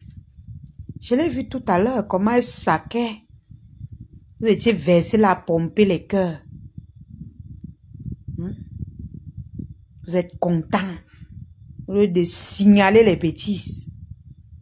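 A woman talks with animation over an online call.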